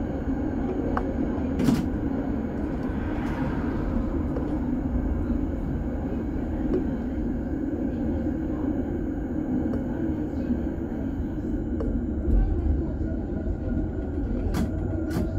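Metal wheels click and clatter over rail joints.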